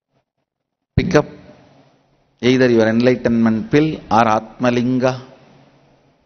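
A man speaks calmly into a microphone, with a slight room echo.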